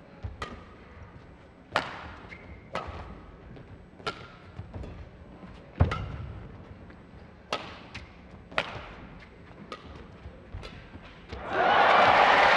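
Sports shoes squeak on an indoor court.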